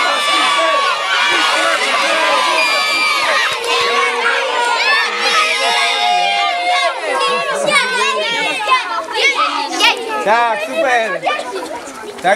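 A crowd of children cheer and shout together.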